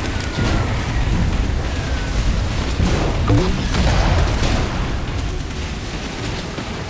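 A small boat engine roars steadily.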